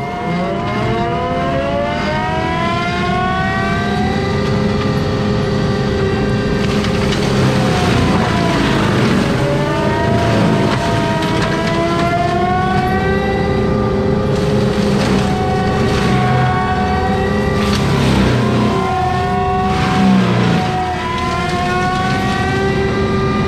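A forestry mulcher's rotor whines loudly, rising and falling in pitch as it cuts brush.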